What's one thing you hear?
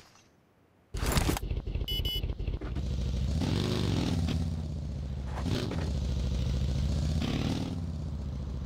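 A small vehicle engine drones and revs as it drives.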